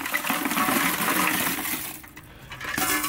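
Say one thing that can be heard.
Lumps of charcoal tumble and clatter out of a metal can into a plastic bucket.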